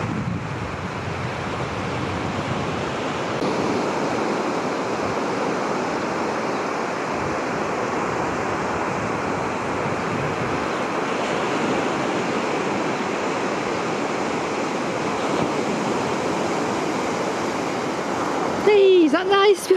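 Small waves break and wash onto a sandy beach.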